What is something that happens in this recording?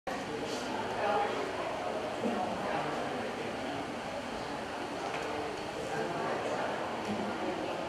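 A guitar's strings are plucked softly during tuning.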